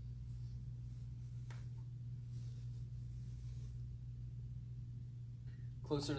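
Bare feet shuffle on a soft mat.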